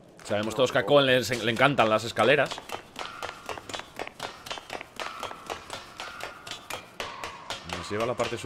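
Footsteps clank on metal ladder rungs in a steady rhythm.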